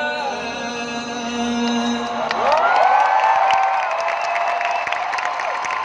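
A man sings through loudspeakers in a large arena.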